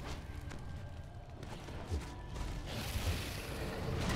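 A magic spell bursts with a crackling whoosh.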